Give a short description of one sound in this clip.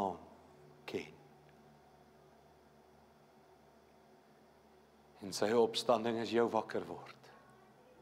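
A middle-aged man speaks with fervour through a microphone in a large hall, with long pauses.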